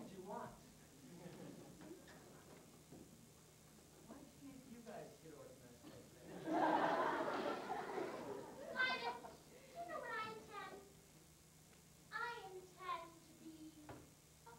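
A young man speaks on a stage, heard from the audience.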